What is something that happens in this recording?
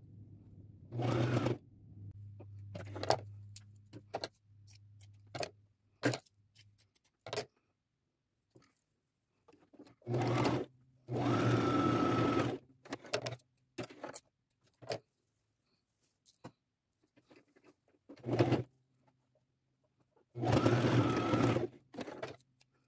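A sewing machine runs in short bursts of stitching.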